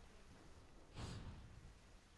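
A body lands with a heavy thud on stony ground.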